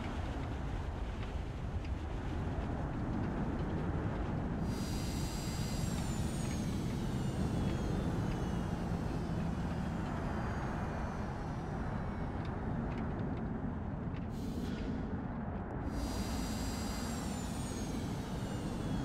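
A propeller plane's engine roars steadily.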